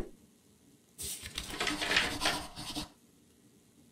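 Paper rustles as a note is picked up.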